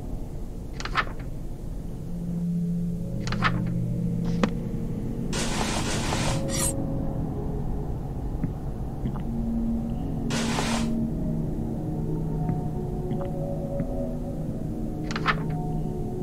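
A menu click sounds now and then.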